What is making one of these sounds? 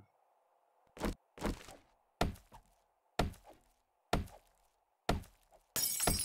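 A heavy club knocks repeatedly against wooden boards.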